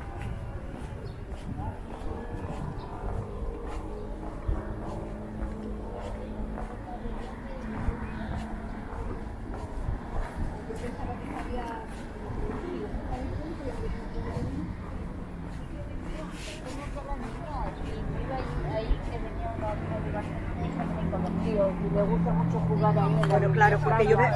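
Footsteps tap on paving stones.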